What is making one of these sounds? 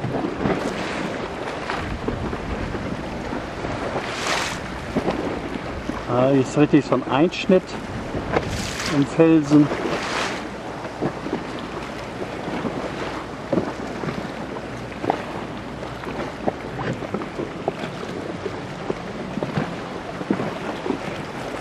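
Small waves lap and splash gently close by.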